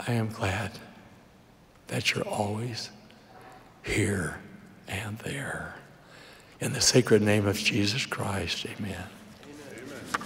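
An elderly man speaks slowly and deliberately into a microphone in a large echoing hall.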